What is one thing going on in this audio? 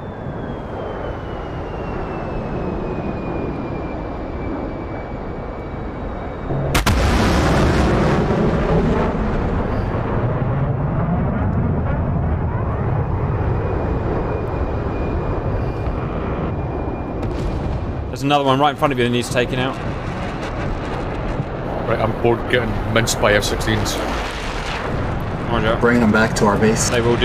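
A tank engine rumbles steadily as the tank drives over grass.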